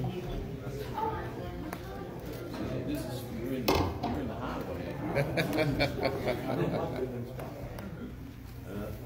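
A man nearby talks in a low voice.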